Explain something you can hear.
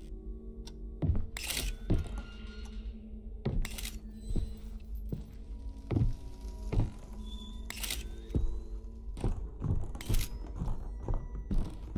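Slow footsteps thud on a wooden floor.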